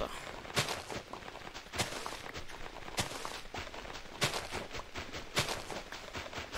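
Crunchy digging thuds come at a steady, regular pace, like soil being broken apart.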